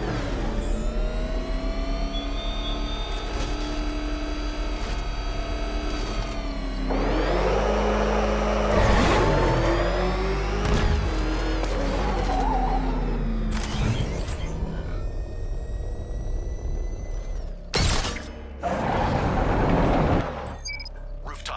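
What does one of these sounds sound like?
A powerful car engine roars at speed.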